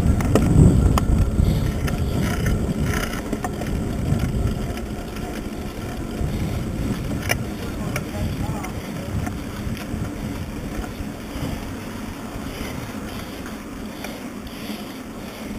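Wind rumbles loudly past, easing off gradually.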